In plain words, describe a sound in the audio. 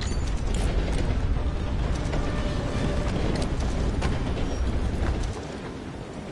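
A train rumbles loudly along the tracks.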